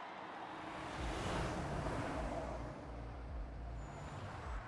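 A heavy vehicle's engine rumbles low.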